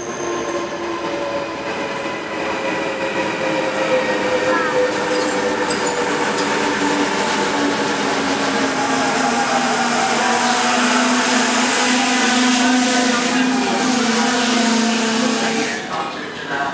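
A train's motors hum with a steady pitch that slowly falls.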